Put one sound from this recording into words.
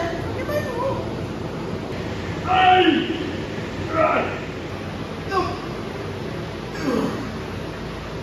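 A young man speaks close by, in short bursts.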